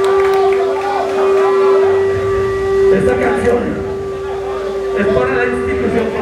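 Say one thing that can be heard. A rock band plays loudly, with drums and distorted guitars.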